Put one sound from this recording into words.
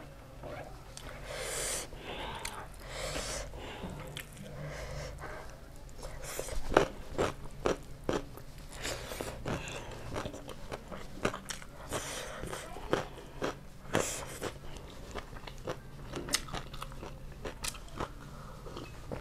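Fingers squish and mix rice and food up close.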